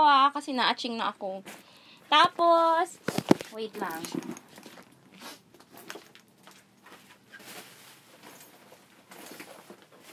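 A fabric handbag rustles and shifts as it is handled.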